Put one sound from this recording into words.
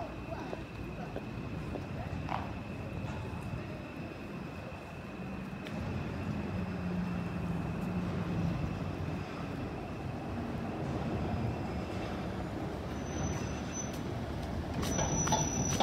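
An electric car rolls past, its tyres hissing on asphalt.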